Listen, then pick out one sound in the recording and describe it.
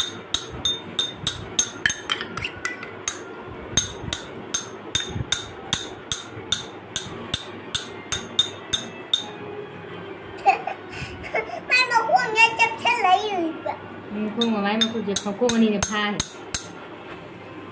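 Metal taps sharply and repeatedly against a small steel cup.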